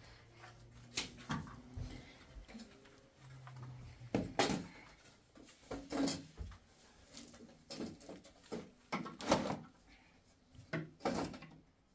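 Small objects clatter and knock close by.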